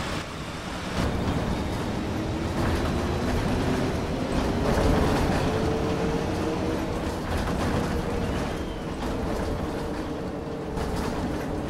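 A bus engine hums steadily and rises in pitch as the bus speeds up.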